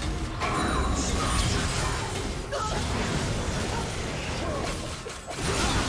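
Magic spells crackle and burst in a busy fight.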